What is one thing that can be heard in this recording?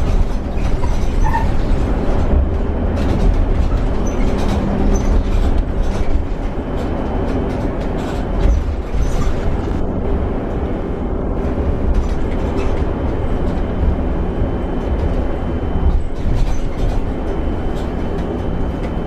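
A vehicle engine hums steadily from inside the cab while driving.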